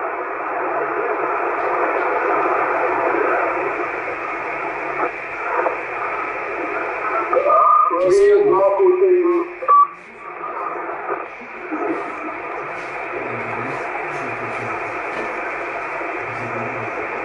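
A radio receiver hisses with steady static from its loudspeaker.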